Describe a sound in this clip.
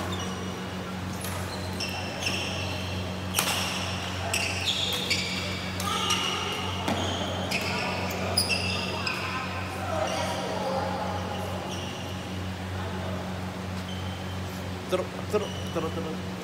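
A steady low hum fills a large echoing hall.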